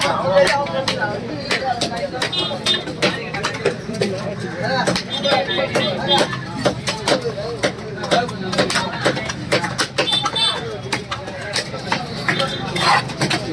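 A knife chops sharply on a wooden block.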